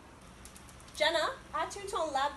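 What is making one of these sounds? A young woman calls out a question loudly.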